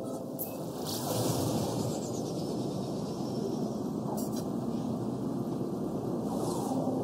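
A spacecraft's pulse engine surges with a rushing whoosh.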